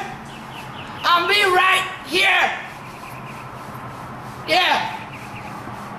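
A young man sings out loudly and with feeling, close by.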